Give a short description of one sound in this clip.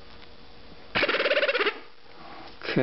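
A small electric motor whirs loudly at high speed for a moment.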